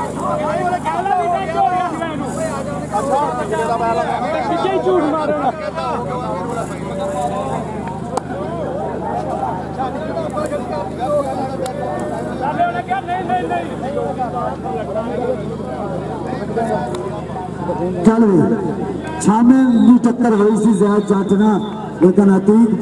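A crowd of men talks and shouts outdoors.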